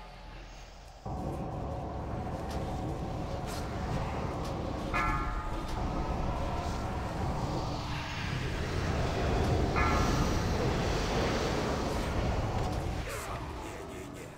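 Magic spells crackle and boom in a fierce battle.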